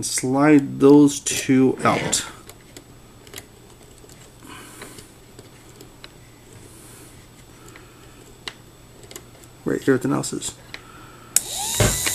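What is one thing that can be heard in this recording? A screwdriver turns in a screw terminal with faint scraping.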